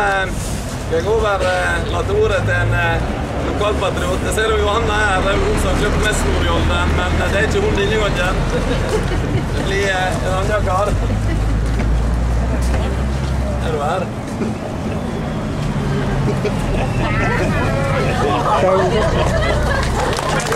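A man speaks loudly and with animation outdoors.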